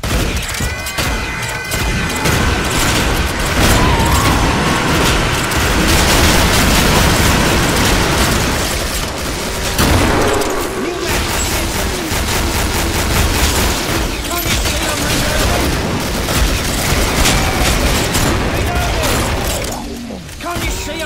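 Rifle gunfire cracks repeatedly.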